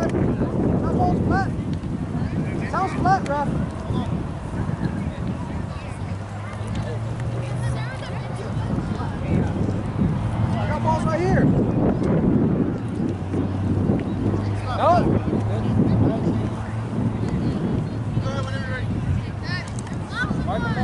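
Wind rumbles steadily across an open field.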